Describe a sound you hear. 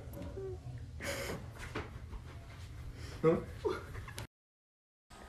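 A young man exclaims in surprise close by.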